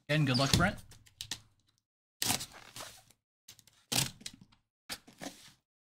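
A cardboard box scrapes and bumps as it is handled.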